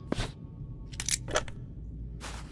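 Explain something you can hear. A small wooden chest clicks open.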